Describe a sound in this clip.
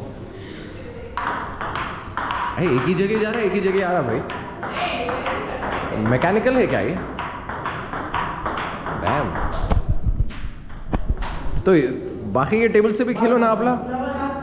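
A table tennis ball clicks back and forth on paddles and a table.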